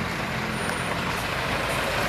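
A truck engine growls as it drives slowly over gravel.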